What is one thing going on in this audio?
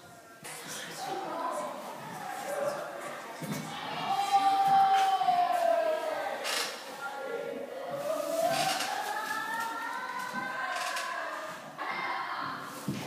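Young women talk and laugh close by in a small echoing room.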